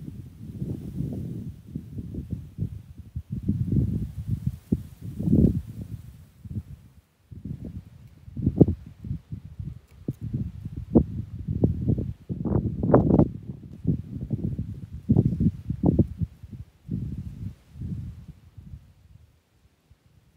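Wind gusts roughly and rumbles close by, outdoors.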